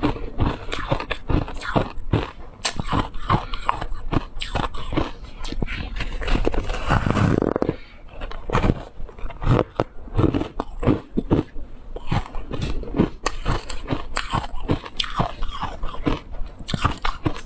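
A young woman bites and chews soft fruit wetly and close to a microphone.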